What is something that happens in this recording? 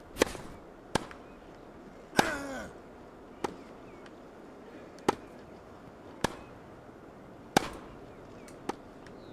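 A tennis ball bounces on the court.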